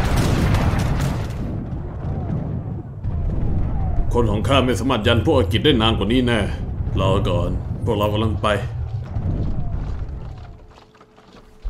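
Cannons boom.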